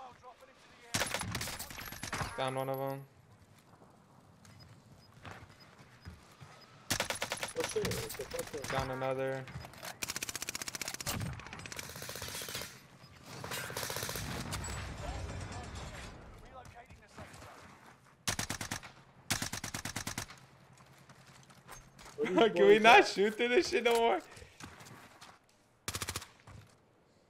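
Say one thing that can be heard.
Sniper rifle shots crack loudly, several times.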